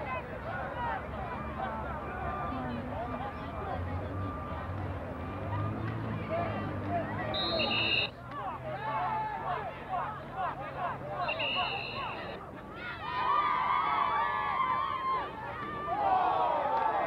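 A crowd of young men and spectators shouts and cheers outdoors.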